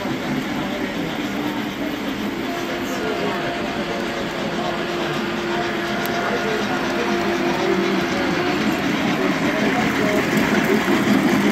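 A model train rumbles along its track, growing louder as it approaches.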